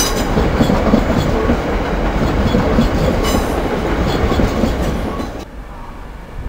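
An electric train rumbles slowly along the tracks.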